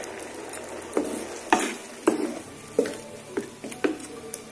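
A wooden spoon stirs and scrapes a pan, knocking against its sides.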